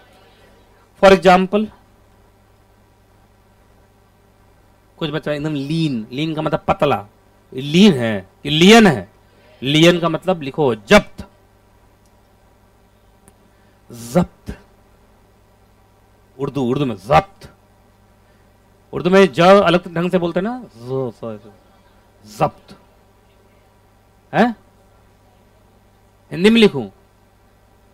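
A man lectures calmly into a close microphone, in short bursts with pauses.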